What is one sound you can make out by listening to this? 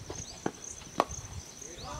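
A cricket bat hits a ball with a sharp crack.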